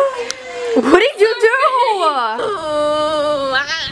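A young girl sings out in a drawn-out, playful voice.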